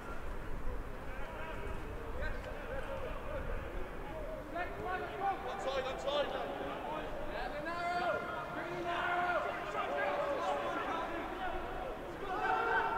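Young men shout calls to each other across an open pitch.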